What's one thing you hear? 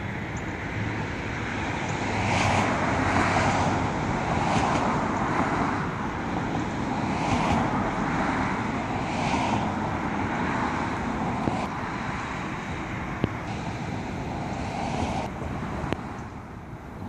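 Cars drive past on a nearby road, their tyres hissing.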